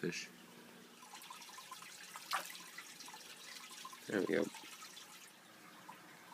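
Water bubbles and trickles softly in a fish tank.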